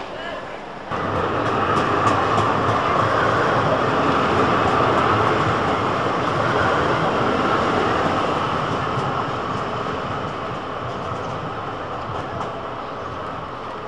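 A tram rumbles by on its rails close by.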